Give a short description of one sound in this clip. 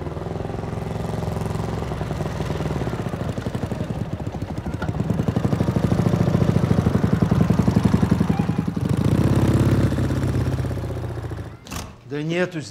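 A motorcycle engine rumbles steadily as it drives past.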